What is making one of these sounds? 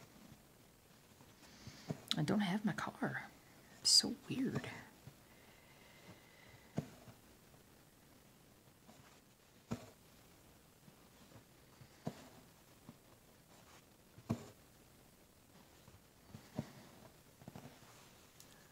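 A needle and thread are pulled through even-weave fabric.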